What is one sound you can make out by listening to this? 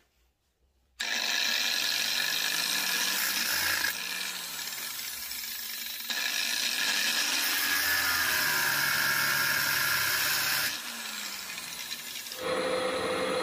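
An angle grinder whines as it grinds metal.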